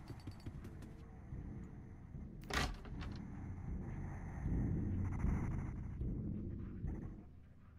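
A wooden door rattles and knocks as someone tries to open it.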